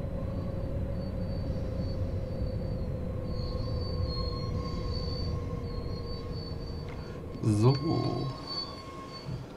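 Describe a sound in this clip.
An electric multiple-unit train hums as it rolls along the rails.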